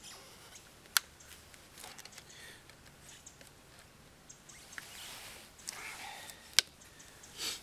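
Twigs snap and crack.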